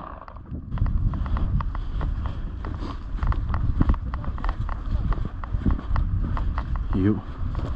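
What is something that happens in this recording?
Footsteps crunch steadily through snow close by.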